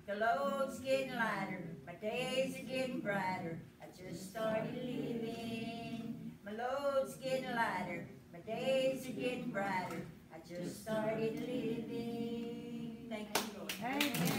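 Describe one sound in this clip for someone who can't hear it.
A woman sings alone.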